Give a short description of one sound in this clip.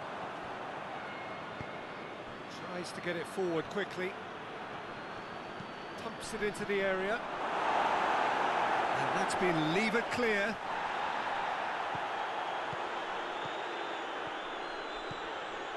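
A stadium crowd cheers steadily, swelling into a louder roar before settling again.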